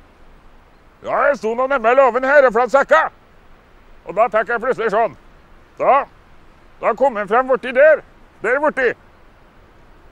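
A man speaks outdoors in a calm, explaining voice, close by.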